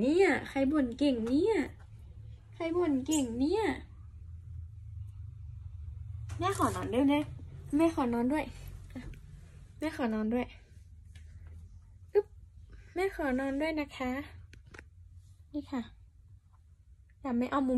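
A young woman talks playfully and animatedly close by.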